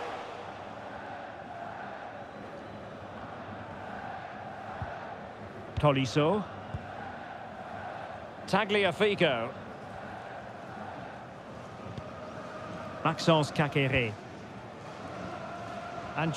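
A large crowd murmurs and hums steadily in a stadium.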